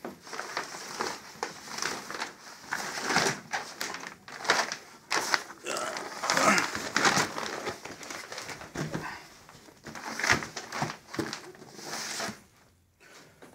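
Plastic packaging rustles and crinkles as a hand handles it up close.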